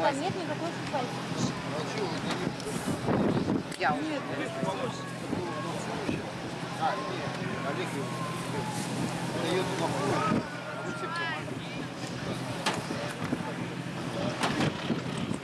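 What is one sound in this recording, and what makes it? A crowd of men talks and shouts outdoors.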